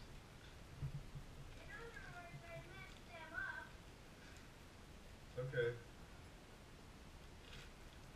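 A plastic bag crinkles in a man's hands.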